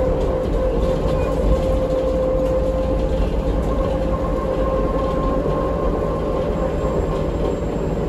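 A bus body rattles and creaks as it rolls.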